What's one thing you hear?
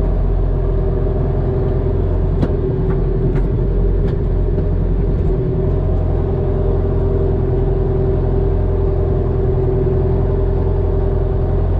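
A hydraulic timber crane whines as it works.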